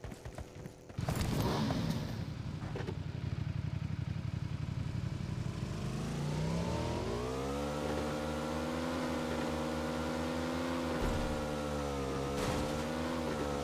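A motorcycle engine roars and revs up as the motorcycle drives off.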